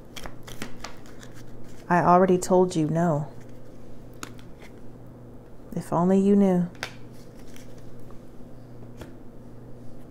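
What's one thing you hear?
Playing cards slap softly onto a cloth-covered table.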